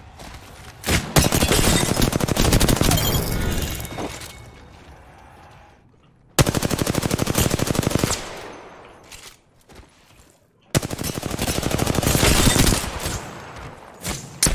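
Rapid gunfire bursts loudly from an automatic weapon.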